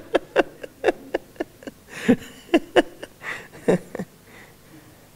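A middle-aged man laughs heartily, heard through a microphone.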